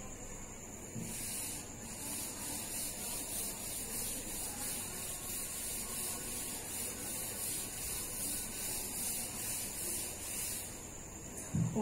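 A duster rubs across a chalkboard in quick, even strokes.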